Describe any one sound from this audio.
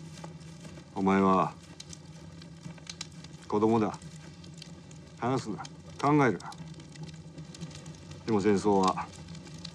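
A man speaks quietly and gravely, close by.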